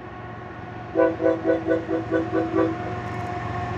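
A train horn sounds in several short blasts.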